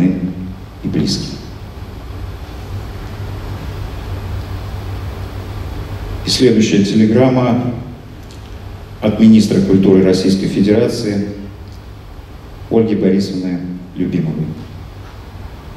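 A middle-aged man reads out a speech slowly and solemnly through a microphone in a large echoing hall.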